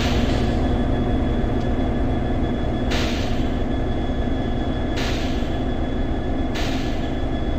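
A train rumbles steadily as it rolls slowly along.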